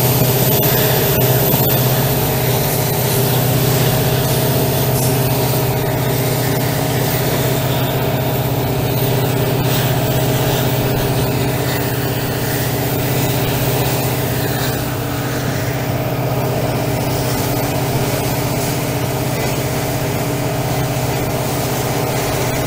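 Train wheels clatter and rumble on the rails.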